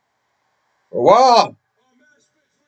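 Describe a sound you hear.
A man lets out a loud, brief yell.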